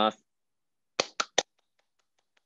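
A man claps his hands a few times.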